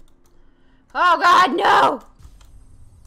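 A young woman exclaims loudly in surprise.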